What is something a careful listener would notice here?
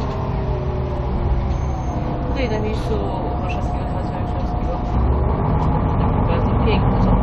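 A vehicle engine rumbles steadily from inside a moving car.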